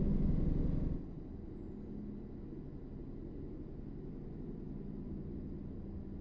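A truck engine hums quietly at a steady cruise.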